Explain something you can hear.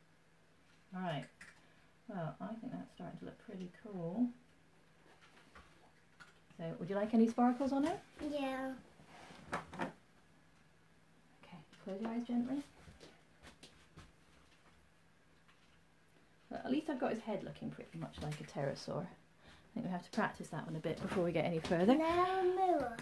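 A woman talks calmly and softly close by.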